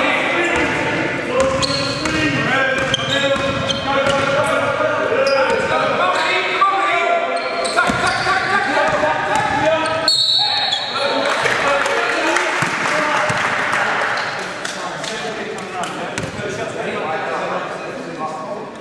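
Young men shout and call out during play.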